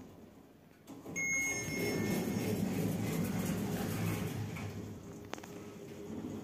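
Lift doors slide shut.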